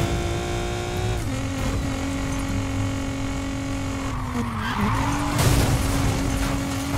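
A powerful car engine roars at high revs, dropping sharply in pitch as it shifts gear.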